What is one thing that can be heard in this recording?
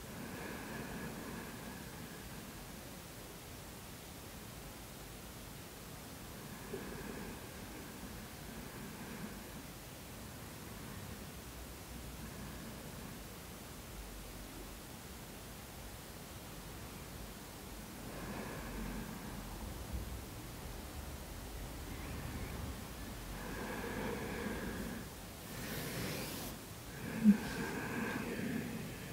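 A woman speaks calmly and softly nearby.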